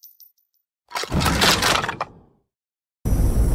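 Bones clatter and scatter onto the floor.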